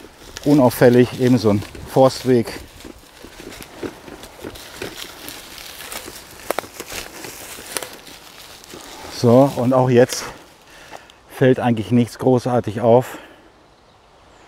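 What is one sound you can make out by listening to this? Footsteps rustle and crunch over dry leaves on a forest path.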